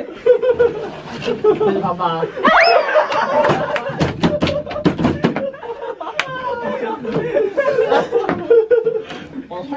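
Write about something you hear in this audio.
Young men laugh loudly.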